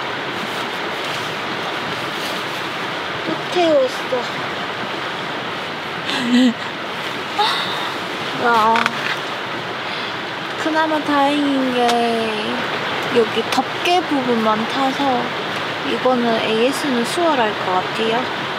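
Nylon fabric rustles and crinkles as it is handled.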